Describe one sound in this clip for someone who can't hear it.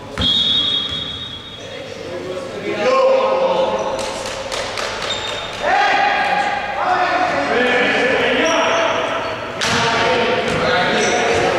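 Several men shout and call out across an echoing indoor gym.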